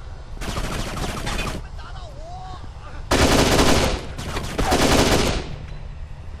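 Rapid bursts of gunfire ring out loudly.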